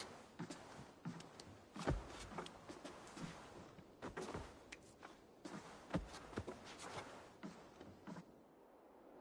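Clothing rustles as two people embrace.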